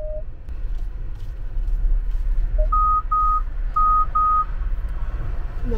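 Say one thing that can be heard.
A car engine hums low and steady from inside the cabin.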